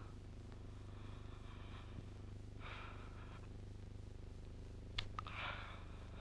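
Paper rustles softly in a man's hands.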